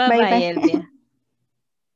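A woman speaks briefly through an online call.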